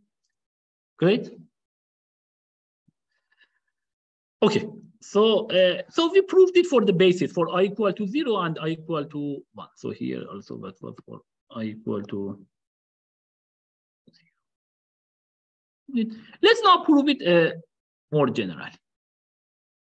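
A young man speaks calmly and close to a microphone, with pauses.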